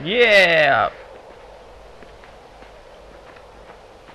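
Soft footsteps patter on dirt.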